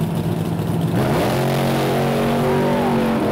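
A car engine revs hard and roars as it launches.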